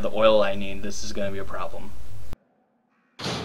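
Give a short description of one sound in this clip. A heavy metal door creaks open loudly.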